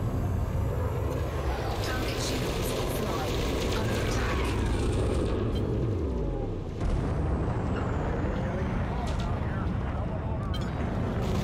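A spaceship engine hums low and steadily.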